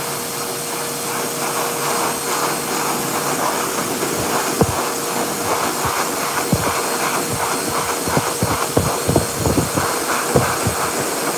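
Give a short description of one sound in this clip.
A pet dryer blows air with a steady loud rush.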